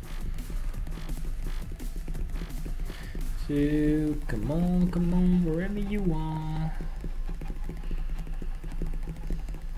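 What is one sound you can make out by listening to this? A mouse clicks rapidly over and over.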